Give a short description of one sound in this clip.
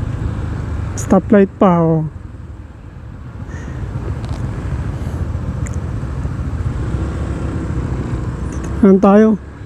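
Car and motorcycle engines rumble steadily in nearby street traffic.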